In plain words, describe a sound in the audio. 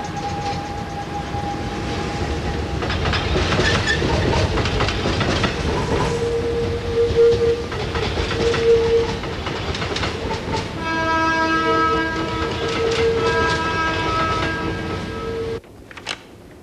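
Heavy machinery rumbles and whines in a large hall.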